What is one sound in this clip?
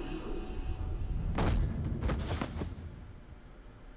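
A body thuds to the ground.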